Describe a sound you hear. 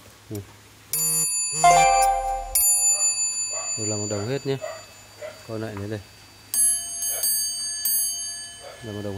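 A small metal bell rings with clear, lingering chimes.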